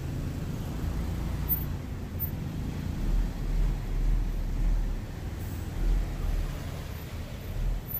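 A motorbike passes close by.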